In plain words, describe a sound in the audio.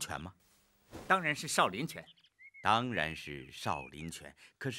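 A young man answers firmly.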